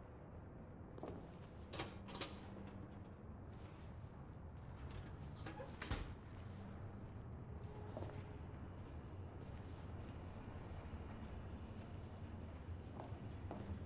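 Footsteps thud on a metal walkway.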